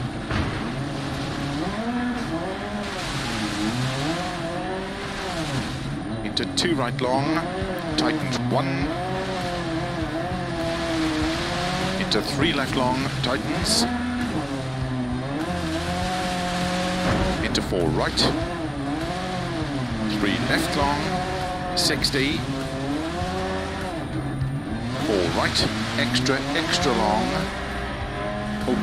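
A rally car engine revs hard, rising and falling in pitch as gears change.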